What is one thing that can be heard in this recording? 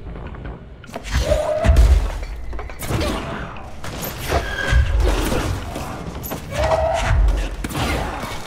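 Heavy objects are flung and smash loudly.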